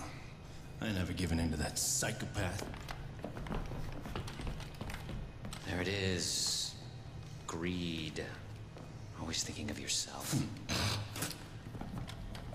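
A man speaks tensely up close.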